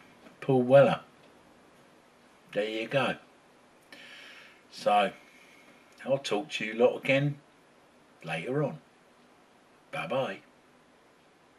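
A middle-aged man speaks calmly in short phrases close to the microphone.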